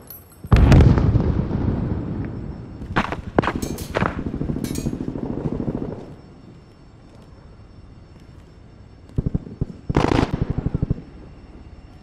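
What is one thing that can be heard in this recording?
A rifle fires rapid bursts of shots that echo through a large hall.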